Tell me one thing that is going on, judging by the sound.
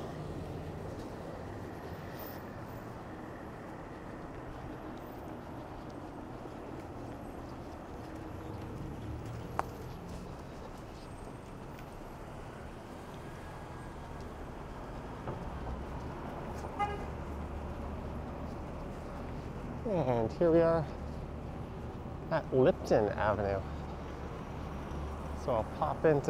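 City traffic rumbles steadily in the background outdoors.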